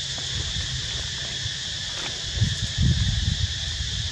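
Dry leaves rustle as a monkey walks over them.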